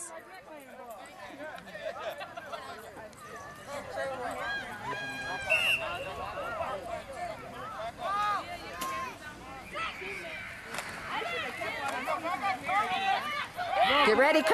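A crowd of spectators talks and cheers outdoors at a distance.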